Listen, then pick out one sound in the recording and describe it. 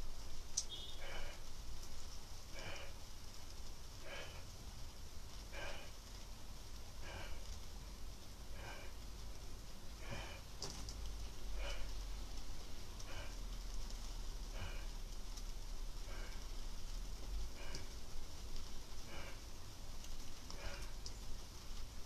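A man exhales with a short strained sound in a steady rhythm, close by.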